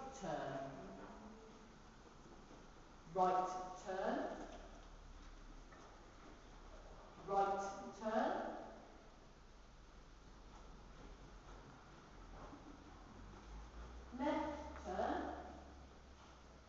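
A woman calls out short commands to a dog in a large echoing hall.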